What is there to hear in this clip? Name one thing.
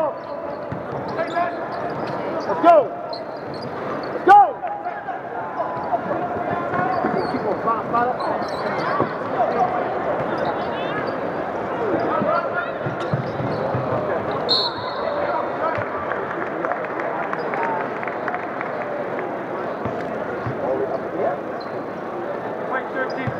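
A crowd murmurs in a large echoing arena.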